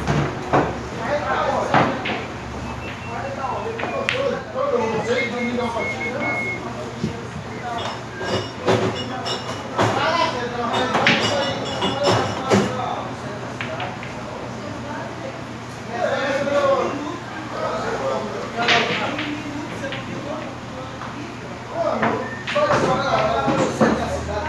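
Several men talk and call out nearby.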